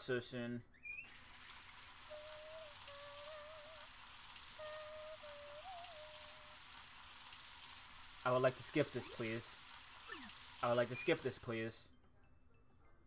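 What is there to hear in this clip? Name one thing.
A shower runs with a steady hiss of spraying water.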